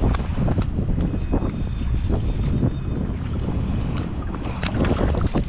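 Waves lap against a small boat.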